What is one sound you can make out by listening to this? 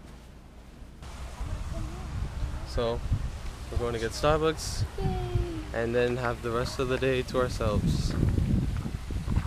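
A young man talks outdoors in wind.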